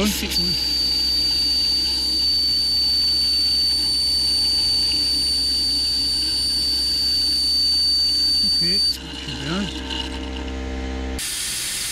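Fluid gurgles as it is sucked up through a thin hose.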